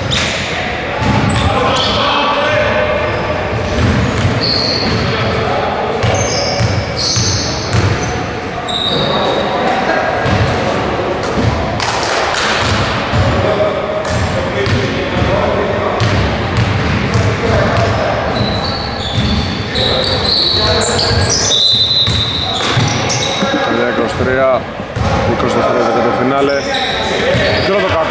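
Men call out to each other across a large echoing gym.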